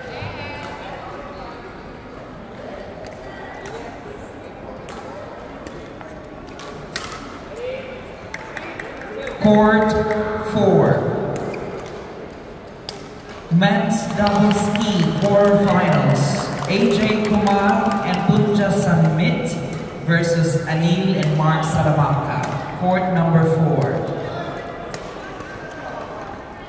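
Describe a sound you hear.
Badminton rackets sharply strike a shuttlecock back and forth in a large echoing hall.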